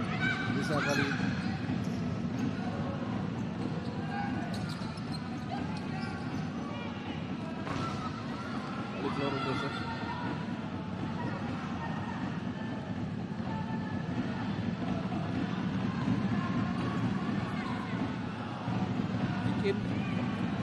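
A crowd cheers and chatters in a large echoing indoor hall.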